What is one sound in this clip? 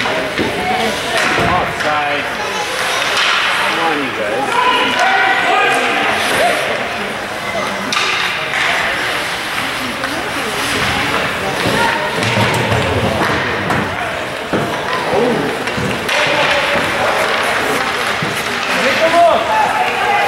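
Spectators chatter and call out loudly in an echoing ice rink.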